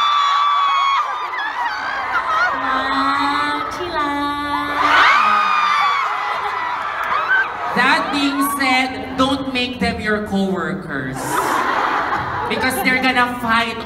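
A crowd screams and cheers loudly.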